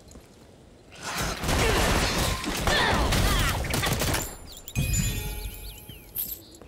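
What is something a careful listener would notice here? Magic blasts and sword strikes crash loudly in a fight.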